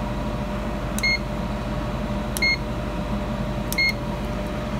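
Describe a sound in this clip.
An appliance beeps in short, high tones.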